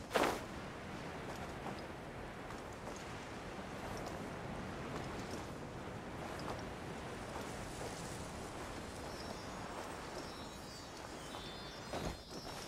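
Wind rushes past steadily during a long glide.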